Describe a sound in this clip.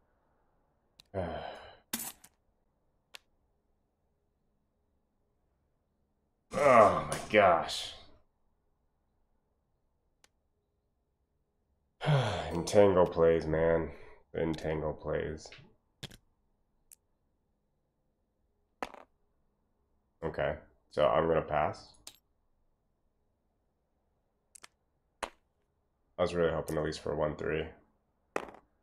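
A young man talks casually into a close microphone, in short bursts with pauses.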